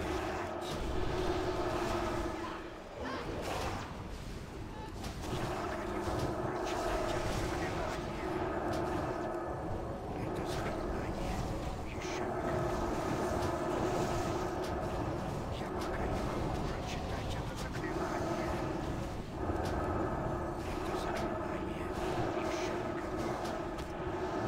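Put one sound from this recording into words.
Magic spells crackle and zap during a battle.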